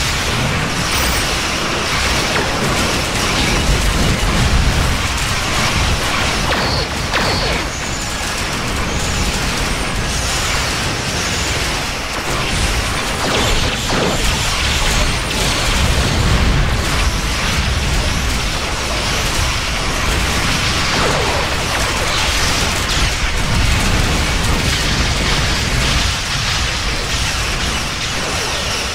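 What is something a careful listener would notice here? Energy weapons fire and crackle in rapid bursts.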